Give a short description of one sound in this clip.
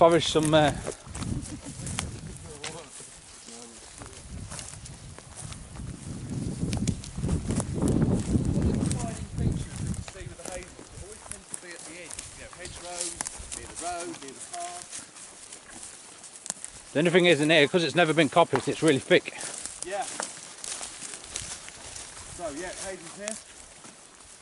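A man talks loudly nearby.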